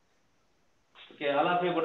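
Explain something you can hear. A man speaks loudly and close up.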